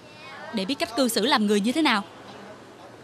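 A young woman speaks sharply and close by.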